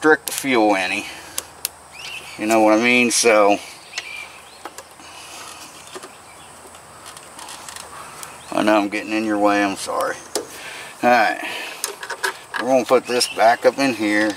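A small plastic part knocks and clicks as it is handled.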